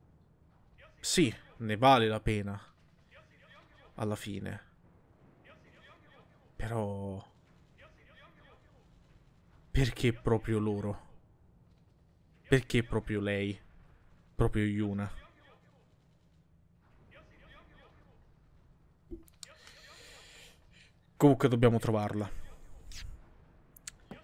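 A young man talks in bursts with animation, close to a microphone.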